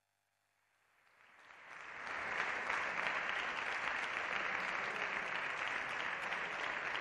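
A crowd applauds in a large echoing hall, swelling in and holding steady.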